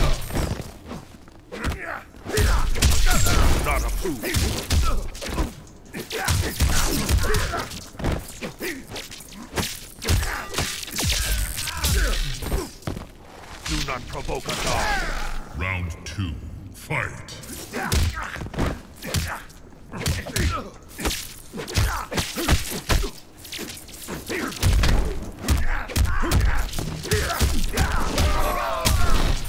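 Fighting game punches and kicks land with heavy thuds.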